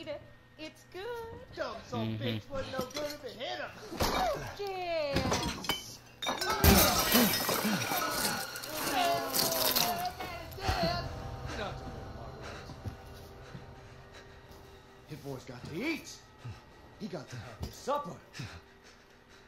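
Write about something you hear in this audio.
A middle-aged woman speaks with animated, mocking glee.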